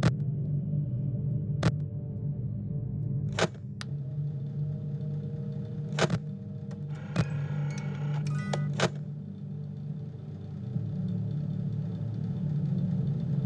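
An electric fan hums steadily.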